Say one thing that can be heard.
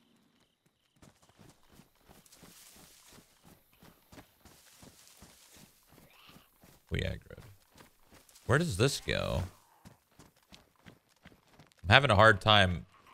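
Footsteps thud quickly and steadily on grass and gravel.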